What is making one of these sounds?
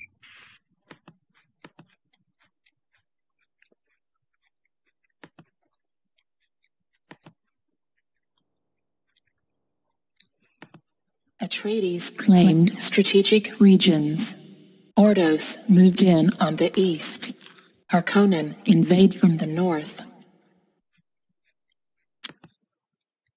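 Short soft clicks sound now and then as menu buttons are pressed.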